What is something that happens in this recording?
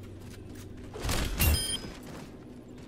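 A heavy melee blow lands with a loud crunch.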